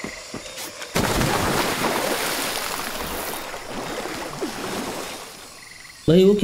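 Water splashes and churns as a person swims.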